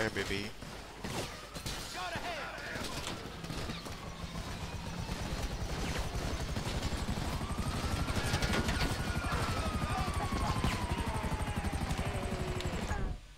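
A helicopter's rotor thumps rapidly and grows louder as it lifts off.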